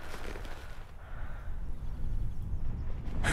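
An older man speaks in a deep voice.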